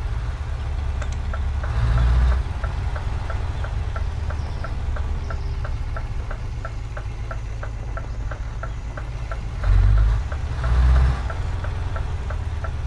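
A turn signal ticks in a steady rhythm.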